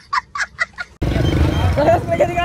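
A crowd chatters noisily outdoors.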